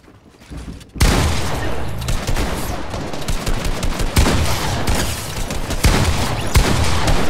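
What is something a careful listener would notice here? Gunshots crack rapidly in a video game.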